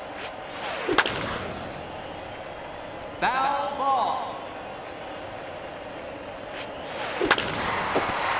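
A bat cracks against a ball.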